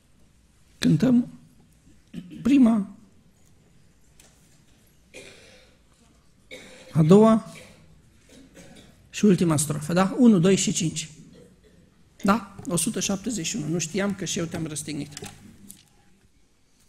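A man speaks through a microphone, pausing between phrases.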